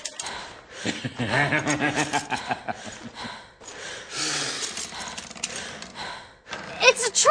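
A man speaks gruffly.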